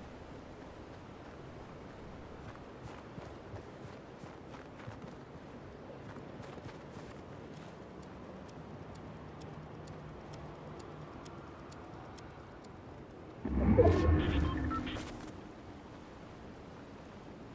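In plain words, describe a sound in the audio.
Footsteps crunch quickly over snow.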